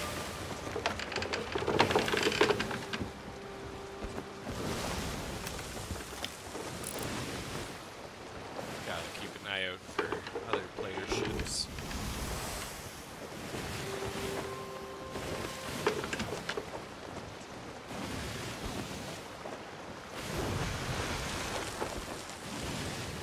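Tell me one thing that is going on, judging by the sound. Waves wash and splash steadily against a wooden ship.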